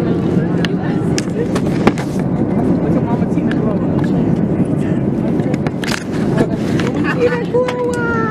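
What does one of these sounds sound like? A crowd of people chatters over a steady hum.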